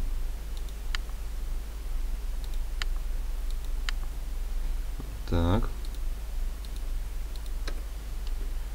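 Soft interface clicks sound as menu buttons are pressed.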